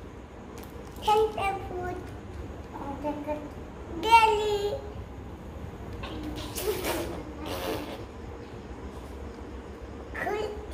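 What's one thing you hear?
A small child babbles and calls out.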